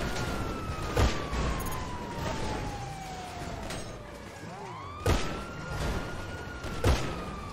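Cars crash together with sharp metallic bangs.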